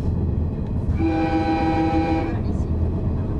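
An oncoming train sounds a loud horn as it passes close by.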